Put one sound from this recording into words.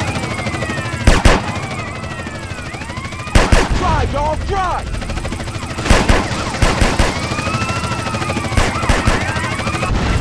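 Explosions boom loudly several times.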